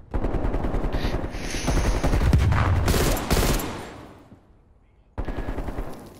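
A rifle fires several sharp, loud shots.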